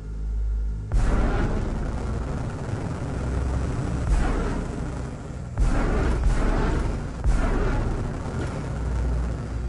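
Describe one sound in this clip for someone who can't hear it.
A spacecraft thruster roars loudly in bursts.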